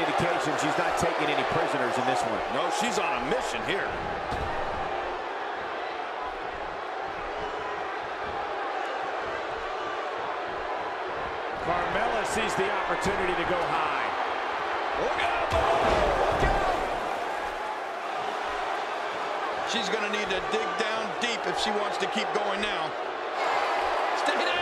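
A large crowd cheers and murmurs throughout in a big arena.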